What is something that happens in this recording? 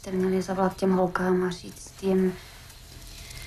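A young woman speaks softly up close.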